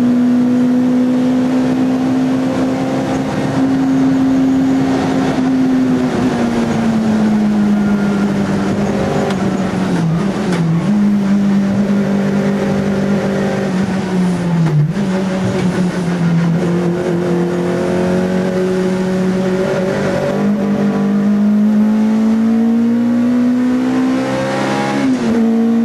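A four-cylinder VW Golf III GTI race car engine roars at high revs, heard from inside the cabin.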